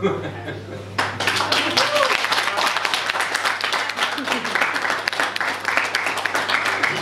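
A crowd applauds and claps steadily.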